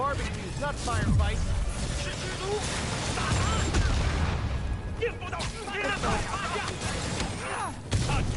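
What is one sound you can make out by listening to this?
Punches and blows thud in a scuffle.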